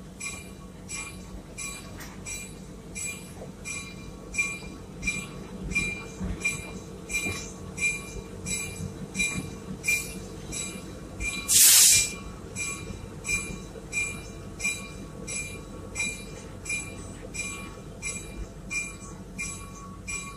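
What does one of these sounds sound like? Train wheels clack in a steady rhythm over the rail joints.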